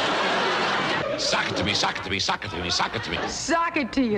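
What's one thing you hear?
A man speaks to an audience in a clear, lively voice.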